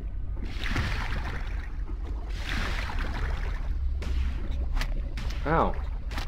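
Water swishes and rushes as a shark swims underwater.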